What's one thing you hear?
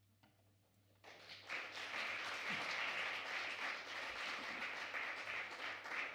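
A jazz band plays loudly.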